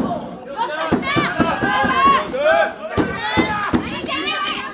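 A wrestler thuds against the ring ropes and mat.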